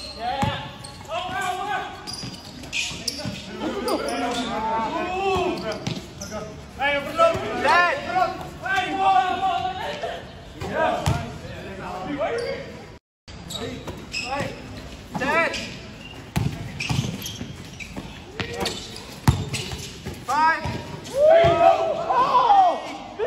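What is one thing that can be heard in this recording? Young men shout and call out to one another on the court.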